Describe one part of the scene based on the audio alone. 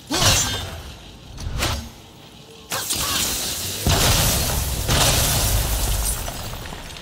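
An axe strikes with heavy crunching impacts.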